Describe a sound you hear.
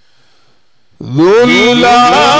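An elderly man bursts into loud, sustained chanting through a microphone.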